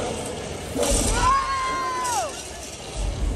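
A large creature lets out a long roar.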